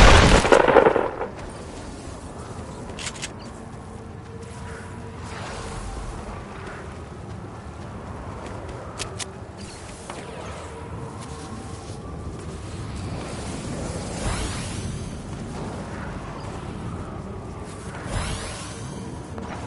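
Footsteps run across the ground in a video game.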